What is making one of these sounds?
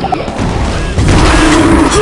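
Rapid gunfire crackles and bangs.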